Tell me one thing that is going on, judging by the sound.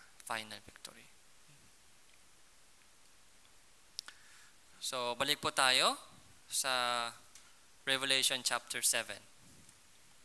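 A man speaks close by, then falls silent.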